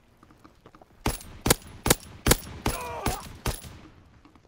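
A rifle fires several sharp shots in a row.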